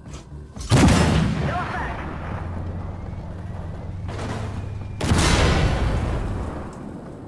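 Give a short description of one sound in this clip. A tank cannon fires with a loud boom that rolls away.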